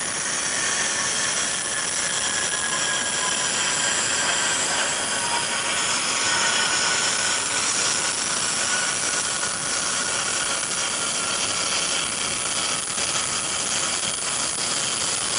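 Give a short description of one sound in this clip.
Jet engines whine with a high, steady pitch.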